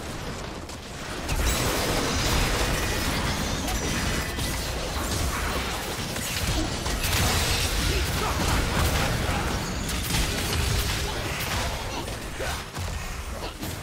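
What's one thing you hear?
Magic blasts and impacts crackle and boom in a busy battle.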